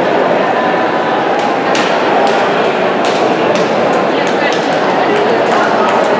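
Swimmers splash in the water.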